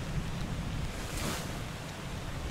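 A paper page turns with a soft swish.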